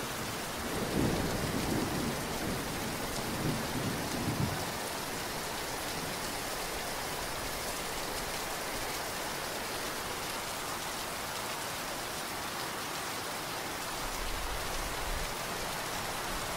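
Wind gusts and rumbles against a microphone.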